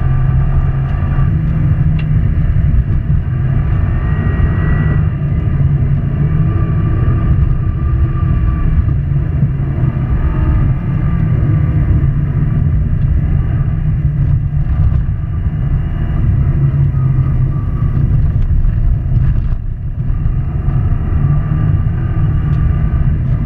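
Studded tyres rumble and crunch over ice.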